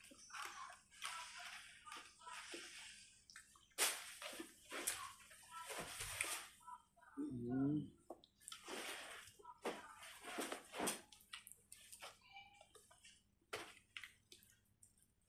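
A plastic fork scrapes and taps a foam food container.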